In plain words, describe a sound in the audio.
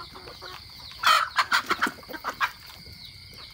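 A rooster crows loudly close by.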